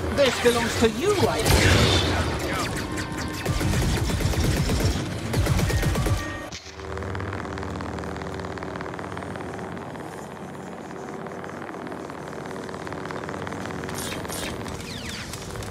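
A lightsaber hums and clashes with sharp crackling hits.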